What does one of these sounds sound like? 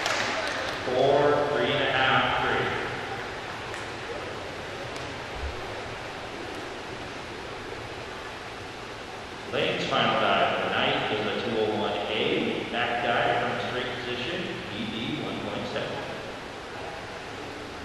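Young women talk and call out nearby in an echoing hall.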